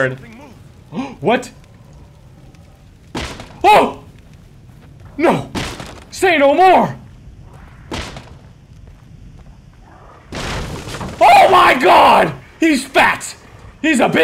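A young man shouts and exclaims excitedly into a close microphone.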